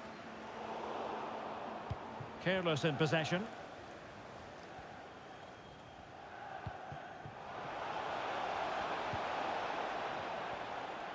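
A large stadium crowd murmurs steadily, then swells into a louder roar.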